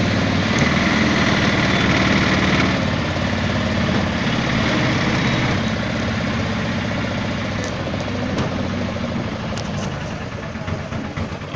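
A vehicle engine hums steadily while driving along.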